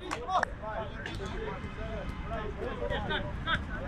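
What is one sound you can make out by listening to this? A football is kicked on grass.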